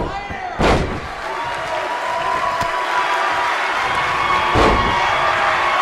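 A body thuds onto a wrestling mat.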